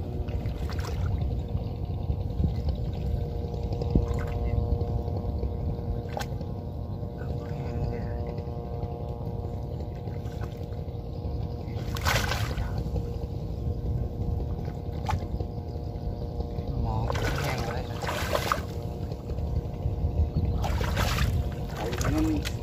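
Water splashes and sloshes in shallow muddy water.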